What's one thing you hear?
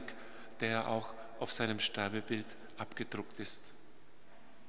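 A man speaks calmly through a microphone in a large echoing church.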